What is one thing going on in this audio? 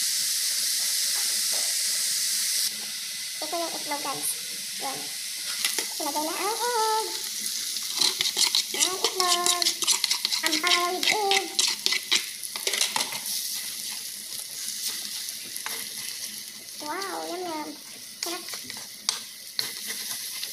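Food sizzles and crackles in a hot frying pan.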